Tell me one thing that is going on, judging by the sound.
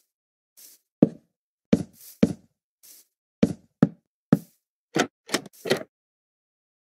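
Wooden blocks thud into place with short dull knocks.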